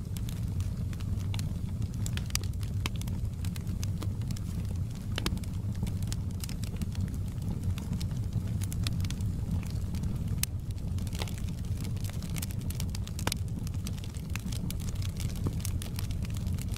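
A fire roars with a low, steady rumble.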